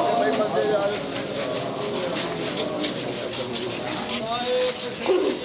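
A crowd of men chants loudly in unison.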